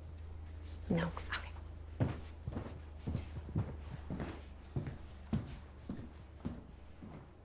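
Footsteps cross a hard floor.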